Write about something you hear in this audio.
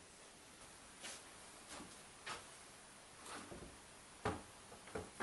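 Objects knock lightly as a man handles them at a bench.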